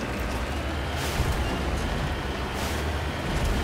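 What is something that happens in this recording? A vehicle's suspension thumps and bangs over bumps.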